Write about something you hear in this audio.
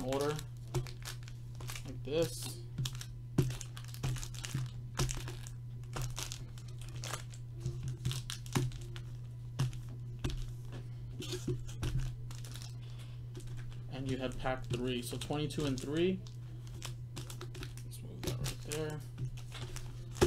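Foil card packs rustle and tap against a table as hands shuffle them.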